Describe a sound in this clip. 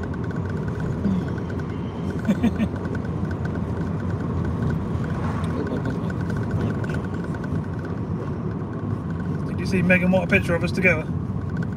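A car engine hums steadily as tyres roll over the road.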